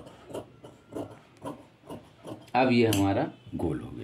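Scissors snip through thin fabric.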